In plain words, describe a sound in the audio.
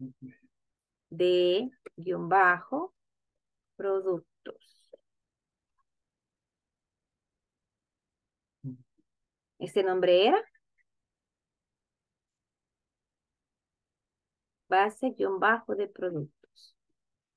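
A young woman speaks calmly into a microphone, in short phrases with pauses.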